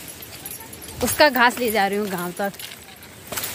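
A young woman speaks close by with animation.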